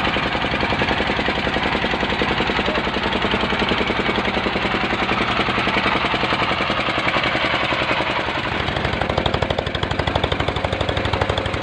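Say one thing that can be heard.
A boat engine chugs loudly and steadily close by.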